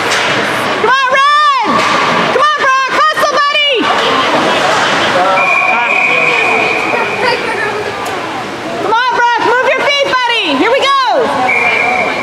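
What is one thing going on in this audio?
Spectators shout and cheer loudly in an echoing arena.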